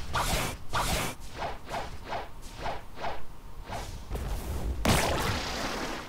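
Whooshing attack effects sound in quick bursts.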